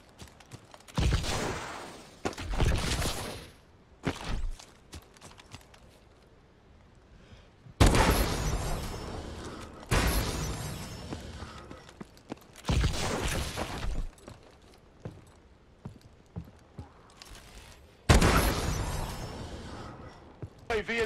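Gunshots crack loudly with a booming echo.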